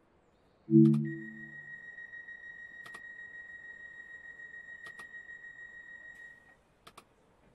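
A warning beep sounds steadily.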